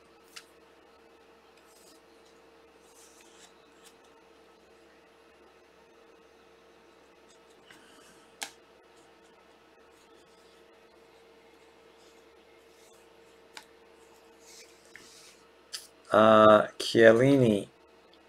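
Trading cards rustle and click as hands shuffle them.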